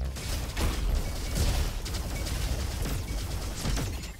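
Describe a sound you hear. Laser beams hum and zap.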